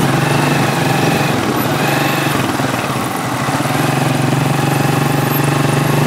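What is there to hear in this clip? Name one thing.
A jeepney engine rumbles nearby.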